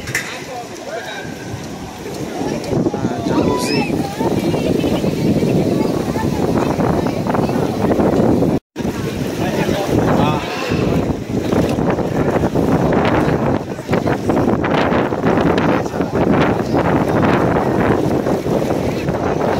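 Many people chatter and laugh outdoors around a pool.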